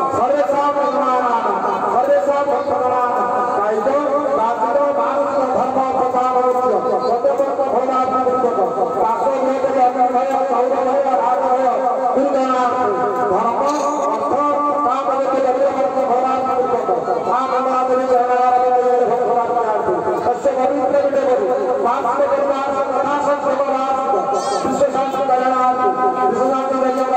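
A group of men chant together in a steady rhythm.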